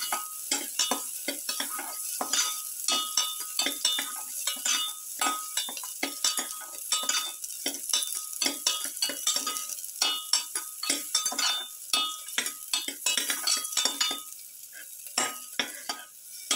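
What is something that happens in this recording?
Garlic and shallots rattle and clink against a metal bowl as they are tossed.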